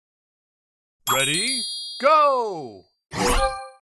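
A short, bright game jingle plays with swooping tones.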